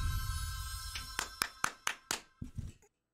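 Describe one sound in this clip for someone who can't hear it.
A man claps his hands several times.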